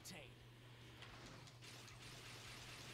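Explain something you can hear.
A burst of dust blasts up as a game character lands.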